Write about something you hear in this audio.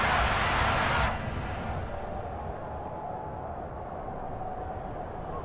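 A large stadium crowd roars loudly, then suddenly drops to a low, steady murmur.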